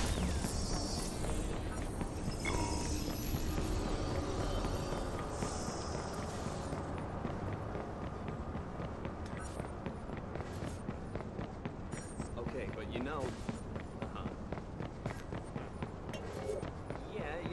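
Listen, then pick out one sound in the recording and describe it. Footsteps patter on pavement at a quick pace.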